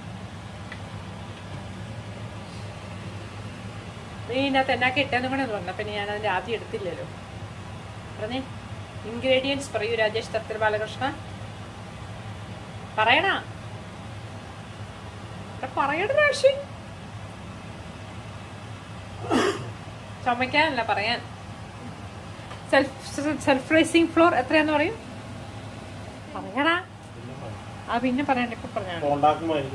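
Hot oil sizzles and bubbles steadily in a frying pan.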